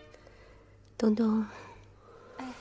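A young woman sighs close by.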